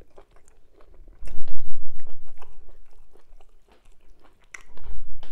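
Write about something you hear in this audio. Soft food squishes between fingers.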